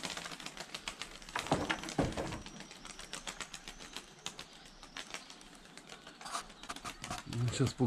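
Pigeons flap their wings in flight overhead.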